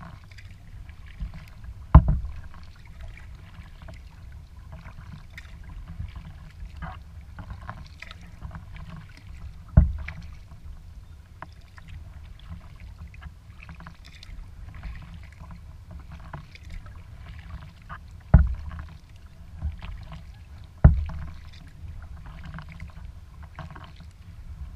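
Water laps and splashes gently against a kayak's hull.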